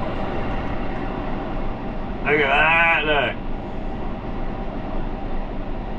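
A man talks calmly close to the microphone.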